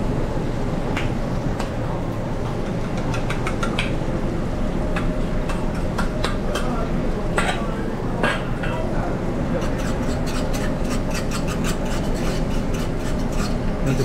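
Metal utensils clink and clatter against pans.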